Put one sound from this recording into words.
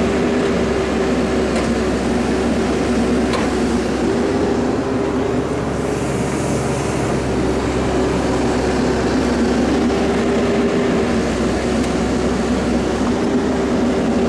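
Branches and roots snap and crack as an excavator bucket digs.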